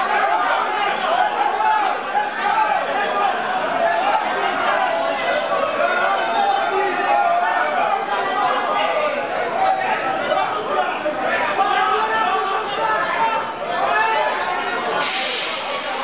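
A large crowd of young men shouts and cheers excitedly close by.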